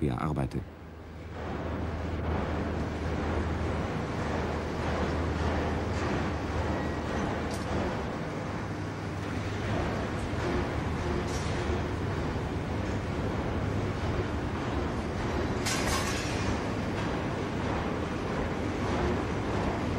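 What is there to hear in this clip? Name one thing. Steam hisses loudly and steadily.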